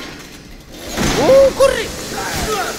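A shotgun fires a loud blast.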